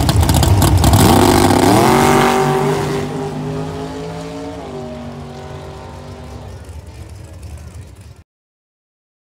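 A drag racing engine roars as the car launches and speeds away, fading into the distance.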